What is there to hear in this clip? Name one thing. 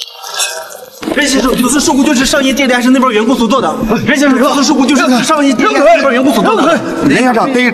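A man speaks loudly and agitatedly close by.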